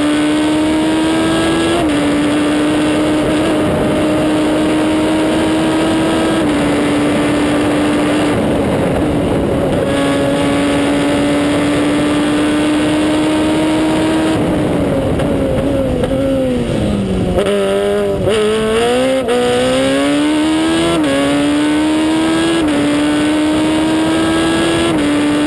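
A race car engine roars loudly at high revs close by, dropping in pitch as it slows for a bend and climbing again through the gears.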